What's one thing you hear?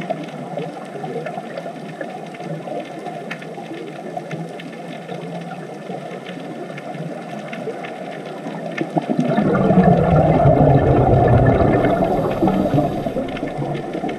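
Scuba divers' air bubbles gurgle and rumble underwater.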